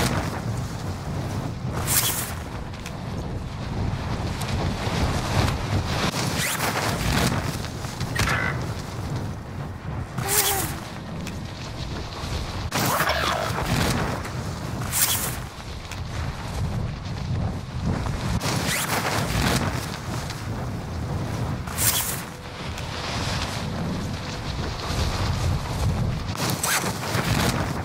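Wind rushes and roars steadily during a fast fall through the air.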